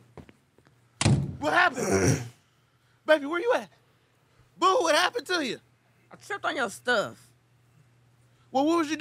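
A second man reacts and talks with animation into a close microphone.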